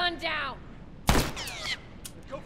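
Bullets strike and spark against a wall.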